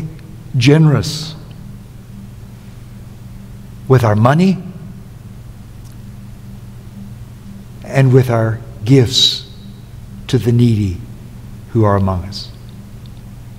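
An elderly man speaks slowly and emphatically through a microphone, in short phrases with pauses.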